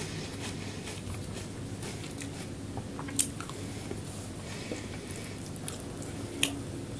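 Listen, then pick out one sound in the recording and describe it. A woman chews soft food with her mouth close to the microphone.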